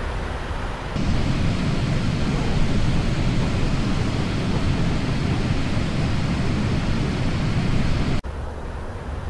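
Jet engines roar loudly from outside the plane.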